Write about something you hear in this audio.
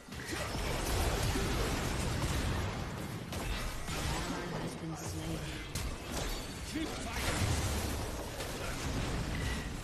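Video game spell effects whoosh, crackle and burst.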